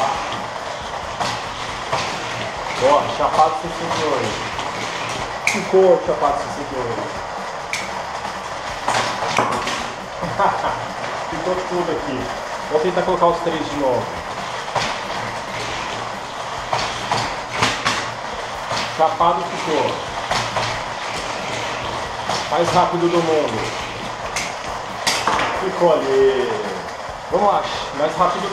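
Small plastic toy cars clack and rattle as they are picked up and set down.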